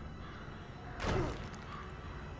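A heavy body lands on a rooftop with a loud thud.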